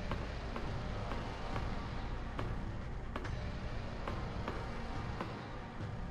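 Footsteps clank on a metal walkway at a steady pace.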